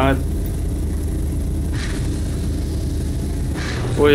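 A heavy sliding door hisses open.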